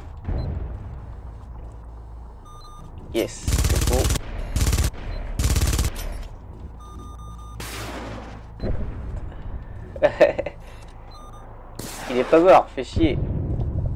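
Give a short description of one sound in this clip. Heavy explosions boom, one after another.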